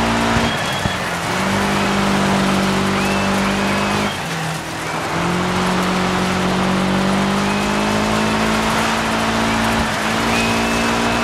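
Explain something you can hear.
A car engine roars steadily, dipping briefly between gear changes and then climbing again.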